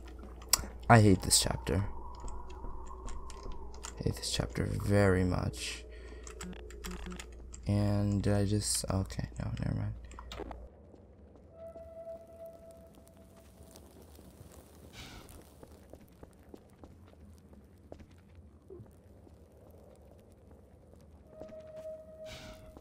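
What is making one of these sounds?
Footsteps tread on stone paving.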